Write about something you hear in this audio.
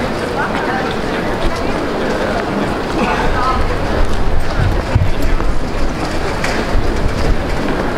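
Footsteps tap on cobblestones close by.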